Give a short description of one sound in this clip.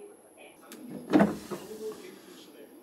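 A detergent drawer slides open with a plastic rattle.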